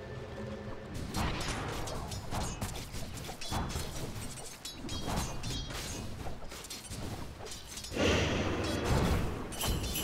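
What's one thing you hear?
Video game battle effects clash, crackle and burst rapidly.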